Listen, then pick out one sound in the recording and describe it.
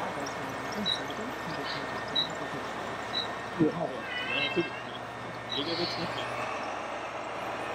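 A small electric motor whines as a model dump truck drives.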